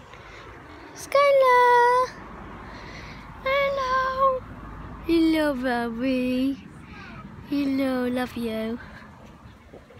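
A dog howls and whines in drawn-out tones.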